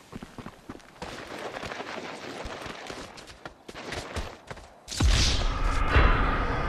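A body tumbles and thuds down a rocky slope.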